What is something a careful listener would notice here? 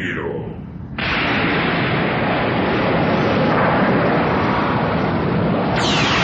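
A powerful blast of energy rushes and roars steadily.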